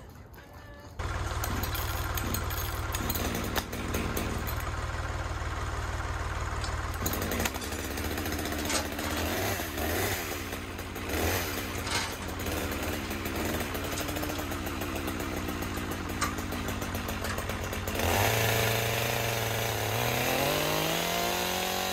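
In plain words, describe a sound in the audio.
A chainsaw engine runs loudly close by, revving up and down.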